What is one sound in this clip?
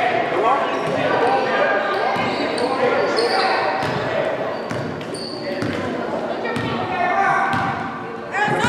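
Young spectators shout and cheer in an echoing gym.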